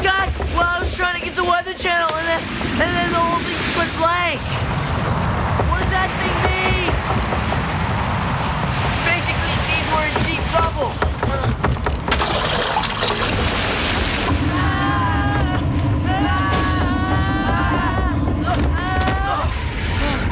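Young women shout and scream in panic.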